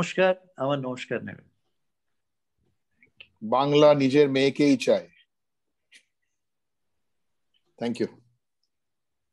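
An elderly man speaks calmly over an online call, pausing between phrases.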